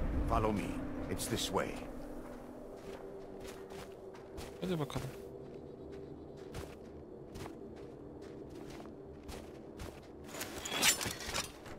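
Footsteps crunch on snow.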